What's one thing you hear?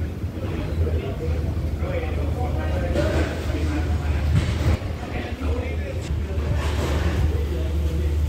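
A diesel train engine idles with a steady low rumble.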